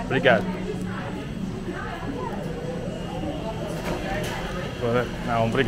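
Adults and children chatter nearby in a busy, echoing indoor space.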